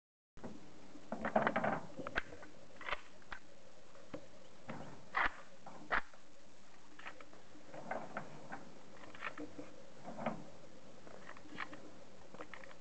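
A man speaks calmly outdoors, close by.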